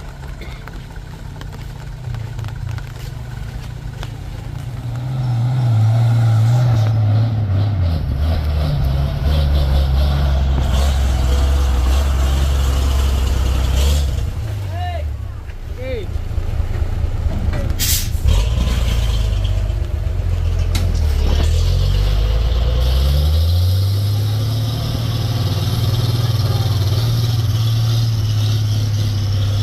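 A heavy truck engine rumbles and revs loudly close by.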